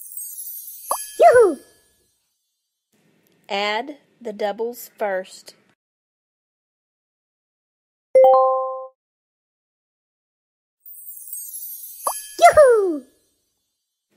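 A sparkling chime sound effect plays with a falling whoosh.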